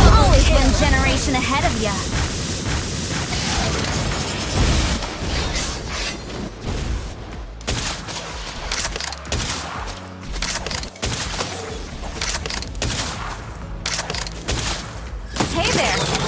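Fantasy battle sound effects crackle, whoosh and clash in quick bursts.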